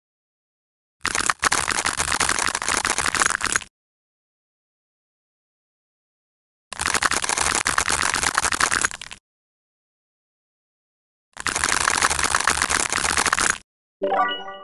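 A craft knife crunches through dry soap in bursts.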